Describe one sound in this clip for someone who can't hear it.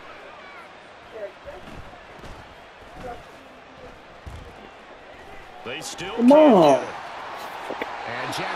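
A stadium crowd murmurs and cheers in a large open space.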